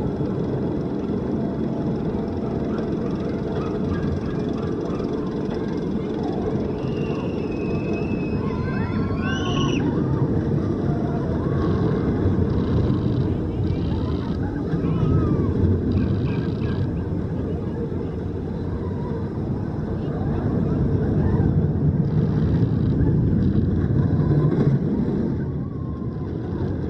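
A roller coaster train rumbles and roars along its track.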